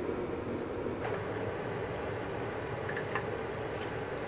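A wooden stick scrapes and taps against a waffle iron.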